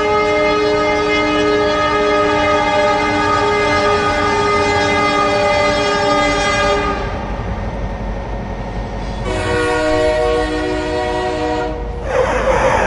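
A train horn blares loudly and long.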